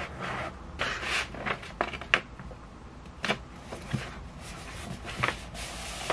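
Wrapping paper crinkles and rustles.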